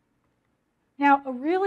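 A woman speaks clearly through a microphone.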